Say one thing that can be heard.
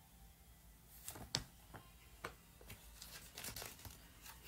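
Paper pages rustle and flip.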